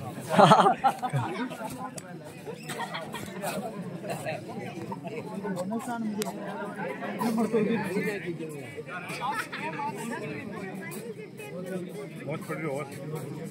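A crowd of young men shouts and chatters outdoors.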